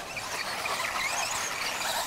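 A small electric motor whines as a toy car speeds past on dirt.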